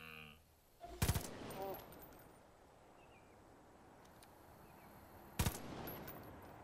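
A pistol fires loud shots, ringing out outdoors.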